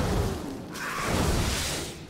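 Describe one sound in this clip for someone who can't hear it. A fiery spell roars and crackles.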